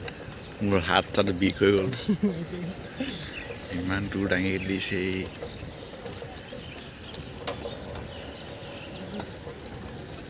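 Bicycle tyres roll over a dirt road.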